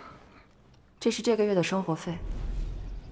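A middle-aged woman speaks quietly and calmly.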